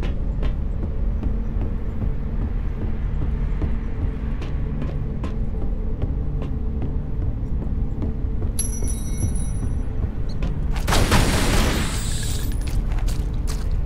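Footsteps run along a track.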